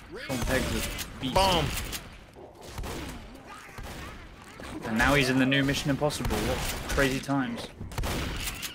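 Shotgun blasts boom.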